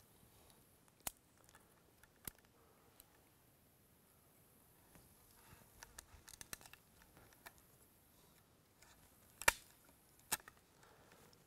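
A knife taps and cuts into wood.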